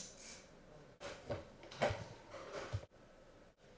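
A door opens and bumps shut nearby.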